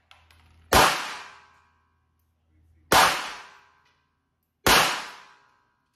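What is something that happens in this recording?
A pistol fires three loud shots that ring briefly in a small room.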